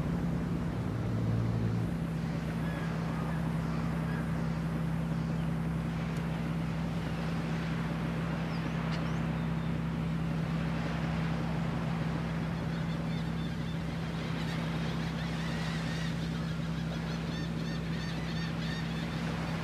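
A sports car engine idles with a low, steady hum.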